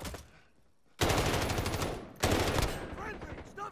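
A rifle fires rapid bursts of gunshots close by.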